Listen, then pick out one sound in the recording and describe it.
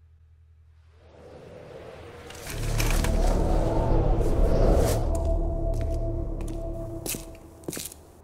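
Strong wind roars and gusts, then fades.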